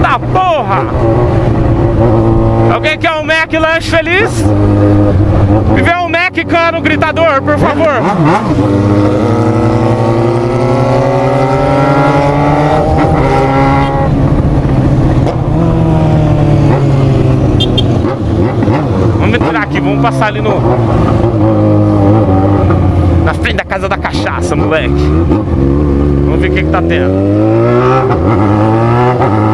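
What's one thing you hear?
A motorcycle engine revs up and down as it rides along.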